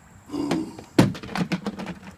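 A plastic tub clatters onto the pavement.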